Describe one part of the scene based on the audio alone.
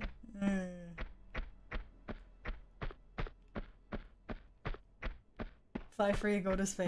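Footsteps run on stone.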